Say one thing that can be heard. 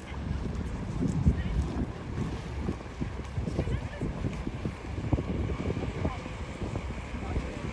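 A boat engine hums steadily as a tour boat glides by.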